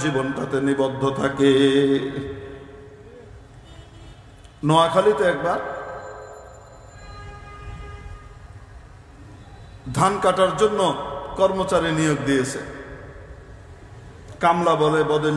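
A man speaks with animation into a microphone, his voice echoing through loudspeakers.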